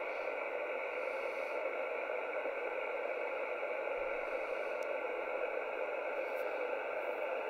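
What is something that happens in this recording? A shortwave communications receiver hisses with single-sideband static through its speaker.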